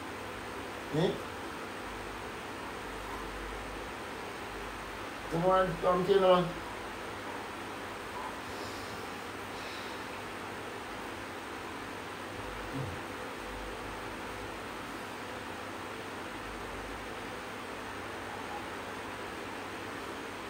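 An electric fan hums steadily nearby.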